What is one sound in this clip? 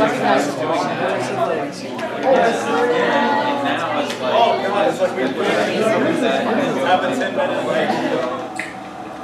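A crowd of people chatter loudly in a room.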